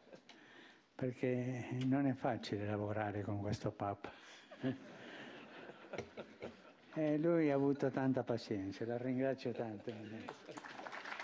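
An elderly man speaks calmly into a microphone in a large room.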